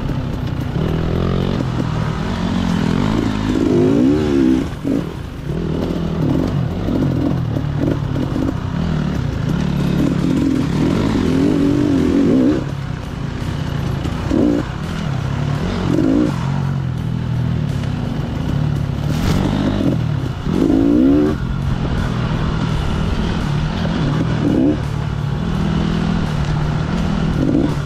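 A dirt bike engine revs and roars close by, rising and falling with the throttle.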